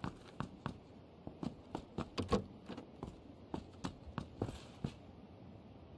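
Footsteps climb hard stairs.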